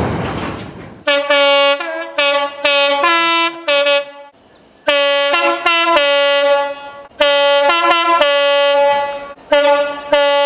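A train horn blares repeatedly in the distance.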